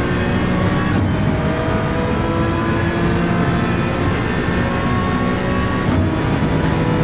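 A race car engine briefly drops in pitch as it shifts gear.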